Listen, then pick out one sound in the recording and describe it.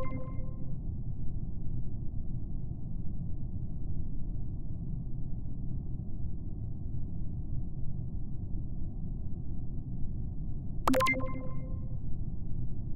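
A short electronic game chime rings.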